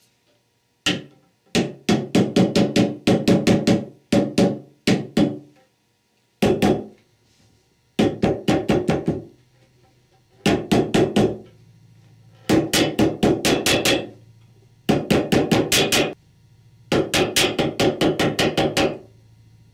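A hammer taps rapidly on a steel driver.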